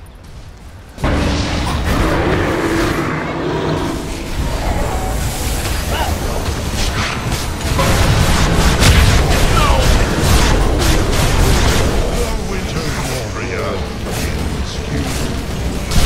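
Magic blasts and hits crackle and thump in a busy video game battle.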